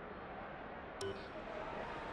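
A soft menu click sounds.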